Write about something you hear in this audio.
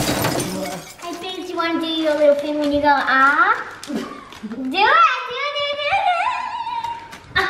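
A young girl speaks playfully close by.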